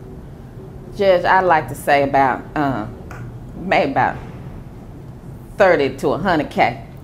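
A young woman speaks calmly and clearly close to a microphone.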